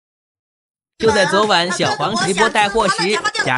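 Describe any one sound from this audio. A young woman speaks loudly and with animation close by.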